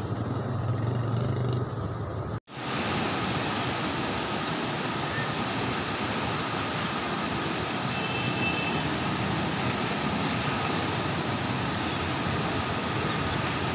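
Fast water rushes and churns loudly, close by.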